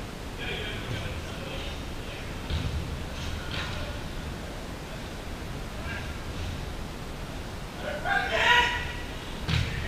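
Young men shout to each other from across a large, echoing indoor hall.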